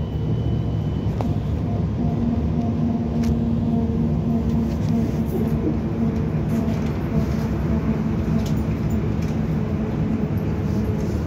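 A vehicle engine hums steadily with a low rumble from inside.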